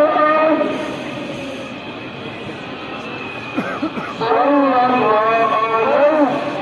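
A man chants in long, drawn-out notes through a loudspeaker that echoes across the open air.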